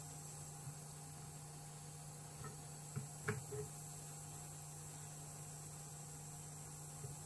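A soldering iron sizzles faintly on a circuit board.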